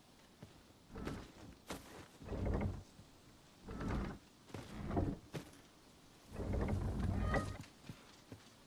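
A large wooden crossbow fires with heavy, booming thuds.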